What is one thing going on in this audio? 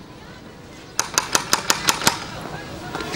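A door knocker raps several times on a door.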